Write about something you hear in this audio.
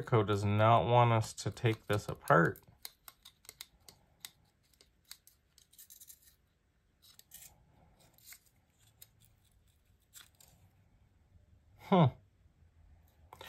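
Small metal knife parts click and clink softly as they are handled.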